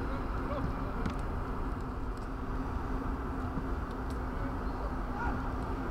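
A football is kicked with a dull thud outdoors.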